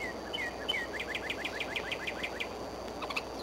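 An eagle calls nearby with a rapid series of high, piping chirps.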